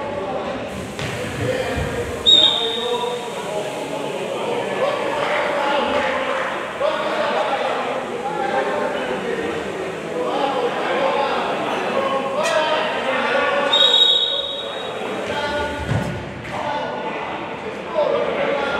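Men shout to one another across a large echoing hall.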